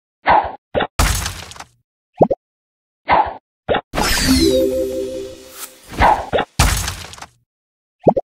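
Bubbles pop and burst in quick bursts.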